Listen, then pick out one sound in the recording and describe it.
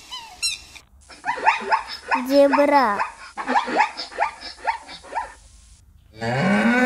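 Zebras bark and whinny.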